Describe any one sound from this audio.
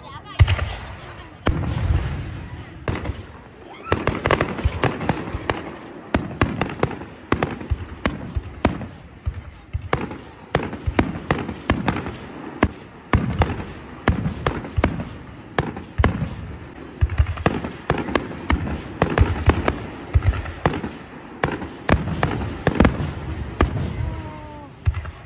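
Fireworks crackle and sizzle as they burst.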